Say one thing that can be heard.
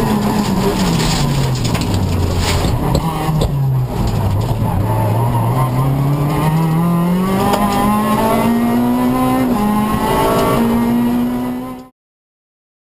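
Gravel and stones rattle under the car's tyres.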